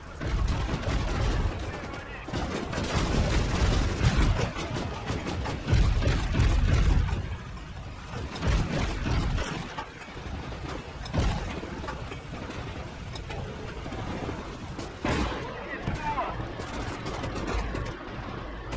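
Tank engines rumble and clatter.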